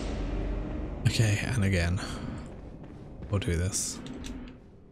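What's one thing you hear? A man speaks briefly into a microphone close by.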